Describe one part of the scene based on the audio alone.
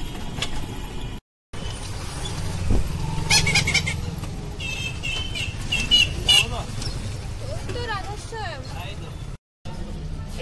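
A motorbike engine rumbles close by.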